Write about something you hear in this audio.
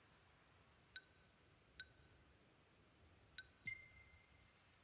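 Short bright menu chimes ring several times.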